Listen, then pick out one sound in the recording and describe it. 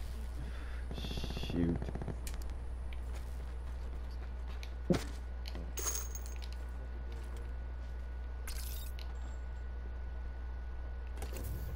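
Footsteps crunch softly on dirt and wood.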